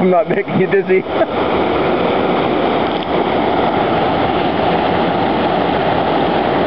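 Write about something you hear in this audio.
Water rushes and churns over a weir.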